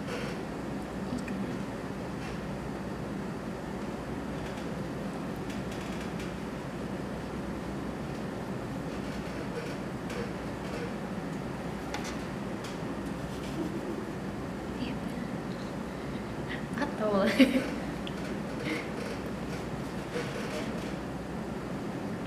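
Hands rub and press soft clay.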